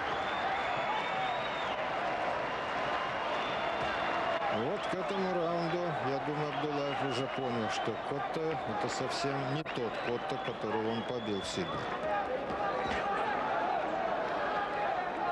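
A large crowd murmurs and cheers in an arena.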